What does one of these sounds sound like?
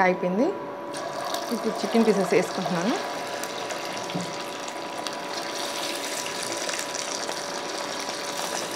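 Oil sizzles and bubbles loudly as food fries.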